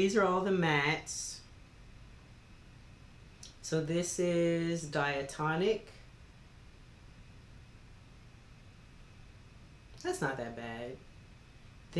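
A woman speaks with animation close to a microphone, in short bursts with pauses.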